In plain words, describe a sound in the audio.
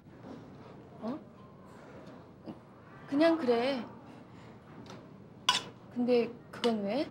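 Another young woman answers, asking questions in an anxious voice, close by.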